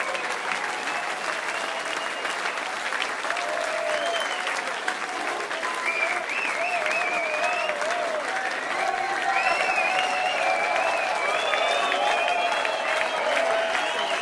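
A band plays loud electric guitars and drums in an echoing hall.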